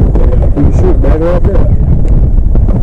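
A man speaks briefly nearby, outdoors in wind.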